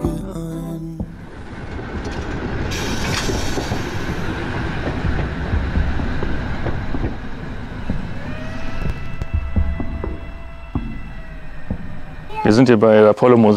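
A train rolls slowly along the track with a low rumble.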